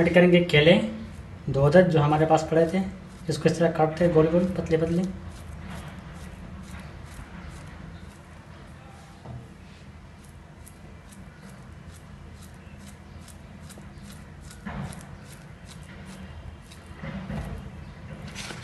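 A knife slices through a soft banana with light, regular clicks.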